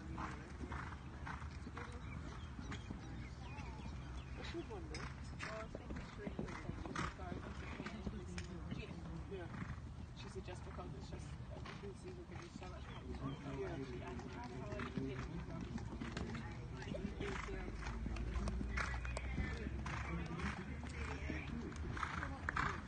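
A horse's hooves thud on sand as it canters.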